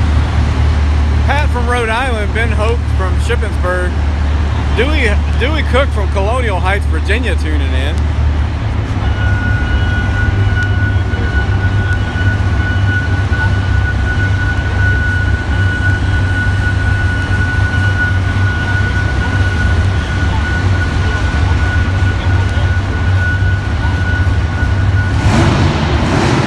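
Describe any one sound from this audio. A large engine idles with a deep, loud rumble in a big echoing hall.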